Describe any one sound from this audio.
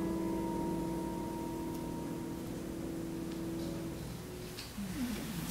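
A grand piano rings out with a final chord that slowly fades.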